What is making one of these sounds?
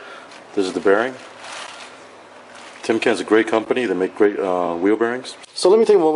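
Plastic wrapping crinkles as a part is lifted out of it.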